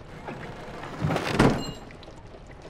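A wooden drawer scrapes open.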